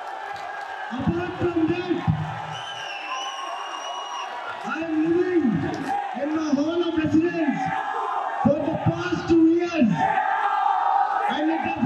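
A young man speaks into a microphone, amplified through loudspeakers in an echoing hall.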